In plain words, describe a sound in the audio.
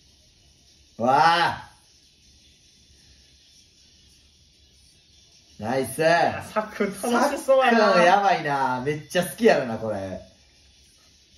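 Two young men laugh and exclaim with excitement, close by.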